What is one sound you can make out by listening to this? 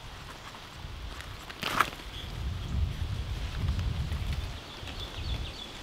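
Onion stalks rustle as they are pulled from the soil.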